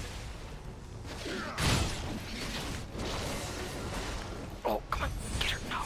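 Spell blasts and weapon hits clash in a fast game battle.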